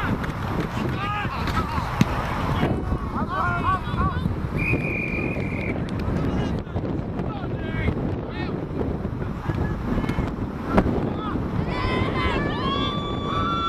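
Football players thud together as they collide.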